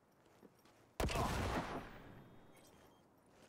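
An explosion booms and its rumble fades.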